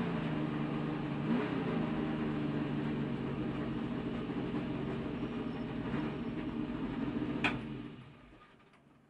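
A race car engine roars loudly from inside the cockpit, then cuts out.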